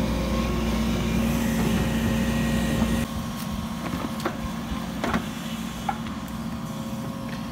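An excavator engine rumbles steadily close by.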